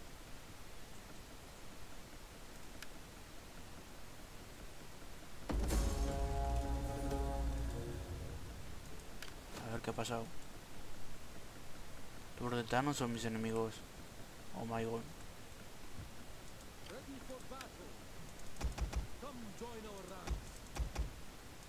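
Soft interface clicks sound as menus open and close.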